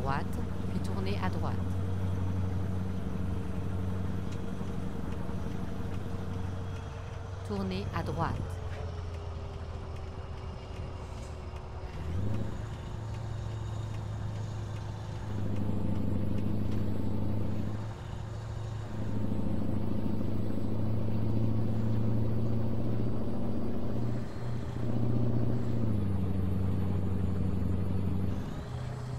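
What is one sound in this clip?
A truck's diesel engine drones steadily, rising and falling as it changes gear.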